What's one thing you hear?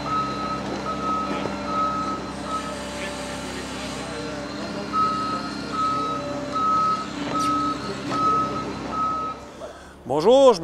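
A heavy machine's engine rumbles steadily nearby.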